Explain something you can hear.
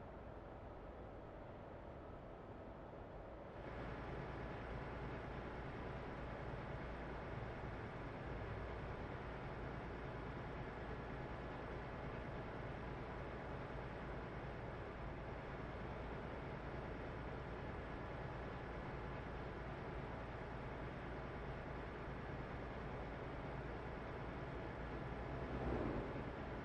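A truck engine hums steadily while driving along a road.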